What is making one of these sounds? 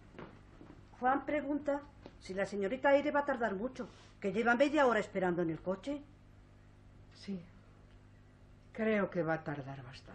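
A middle-aged woman speaks with animation, close by.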